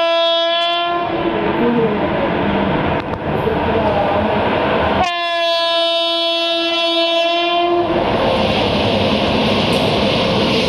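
A train rumbles as it approaches along the tracks.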